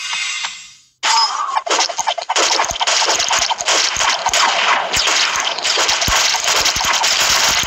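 Mobile game sound effects of rapid arrow shots and hits play in battle.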